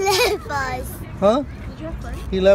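A young boy chatters close by.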